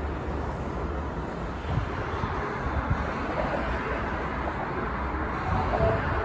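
A distant train approaches with a low hum.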